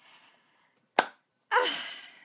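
A woman claps her hands once, close by.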